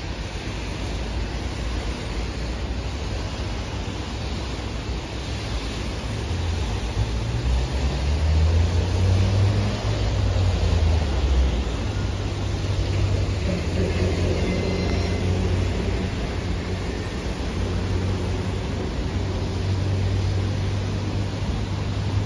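Wind blows and buffets outdoors.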